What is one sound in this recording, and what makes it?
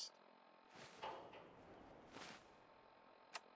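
A mechanical device whirs and clunks open.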